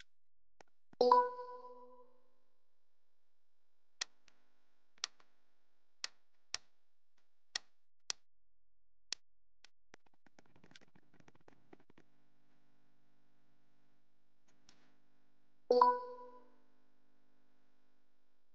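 A game chime rings out as the round ends.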